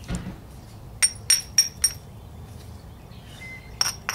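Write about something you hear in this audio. A hammerstone taps against a flint with sharp clicks.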